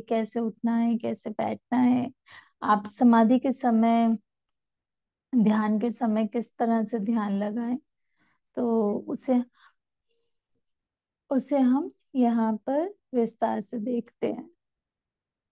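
A young woman speaks calmly and clearly into a microphone, heard through an online call.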